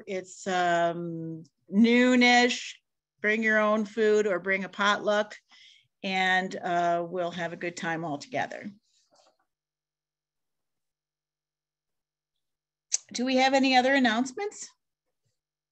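A middle-aged woman talks calmly over an online call.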